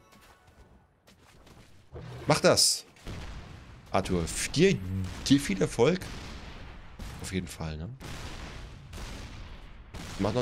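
Game sound effects whoosh and zap.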